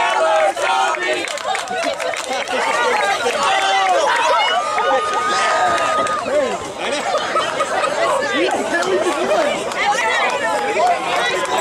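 A crowd of young men talk and call out over each other nearby.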